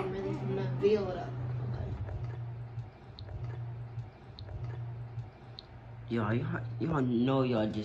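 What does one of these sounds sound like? A little girl slurps a drink from a cup.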